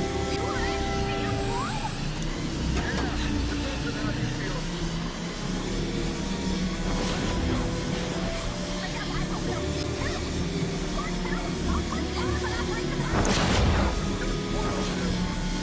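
A hoverboard hums steadily as it glides along.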